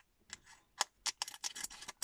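Scissors snip through a foil wrapper.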